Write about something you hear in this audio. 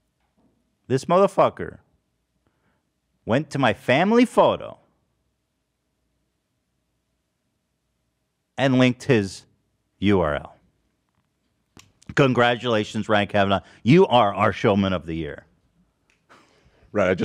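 A young man talks into a close microphone in bursts, with pauses between.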